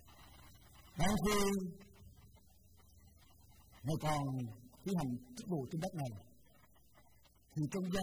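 A middle-aged man speaks calmly and slowly through a microphone in an echoing room, with long pauses.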